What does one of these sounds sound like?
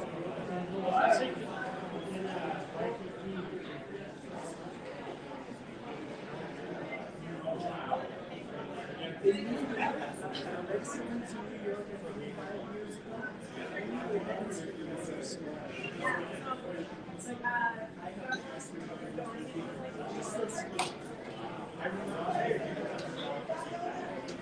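Cutlery and dishes clink on plates.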